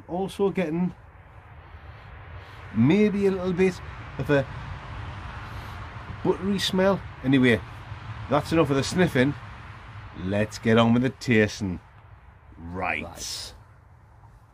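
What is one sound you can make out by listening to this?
A man speaks close by in a casual way.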